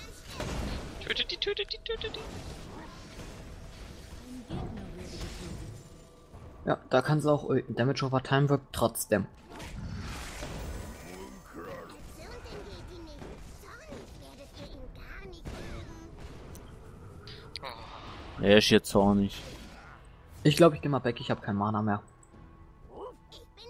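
Fantasy battle sound effects clash and crackle.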